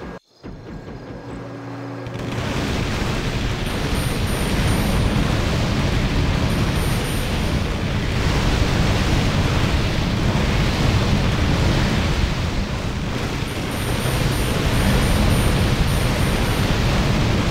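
Many weapons clash and spells burst in a loud, crowded battle.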